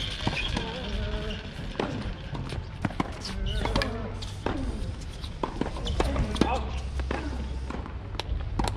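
Tennis balls are struck sharply with rackets outdoors.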